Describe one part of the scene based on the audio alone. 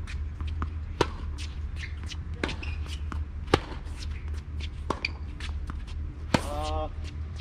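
Tennis rackets strike a ball back and forth with sharp pops outdoors.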